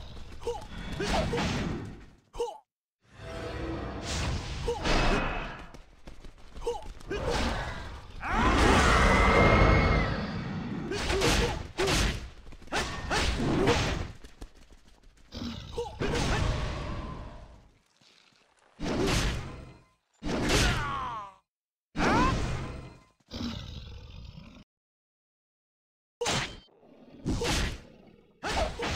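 Magic spells whoosh and burst in quick succession.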